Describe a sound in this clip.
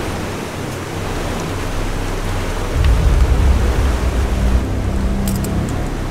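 Diving gear clinks and rustles as a diver adjusts it.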